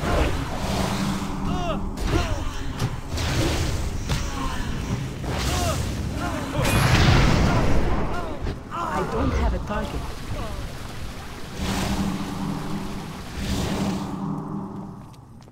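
Magic blasts and weapon blows crash loudly in a busy fight.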